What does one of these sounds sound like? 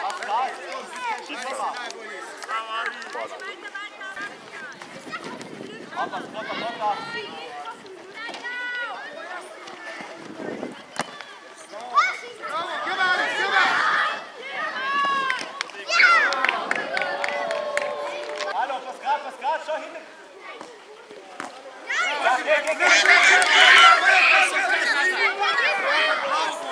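Young children shout to each other outdoors.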